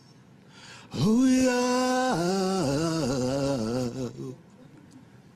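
A young man sings loudly in a drawn-out, wavering voice.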